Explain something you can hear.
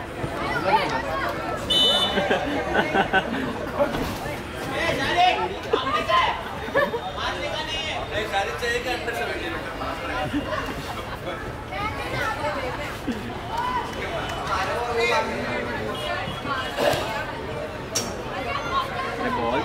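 Many voices of young spectators chatter and shout nearby, outdoors.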